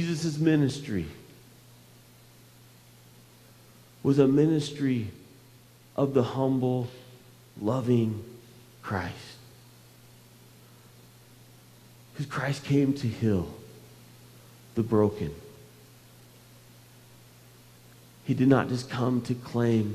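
A man speaks calmly through a microphone in a large echoing hall, with pauses.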